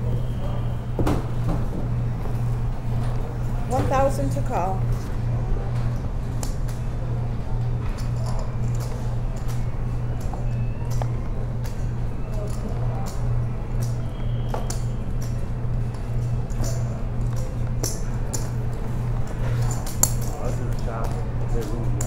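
Poker chips click and clatter on a table.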